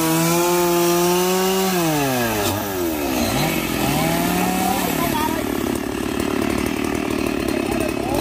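A chainsaw roars while cutting wood, then slows to a rattling idle.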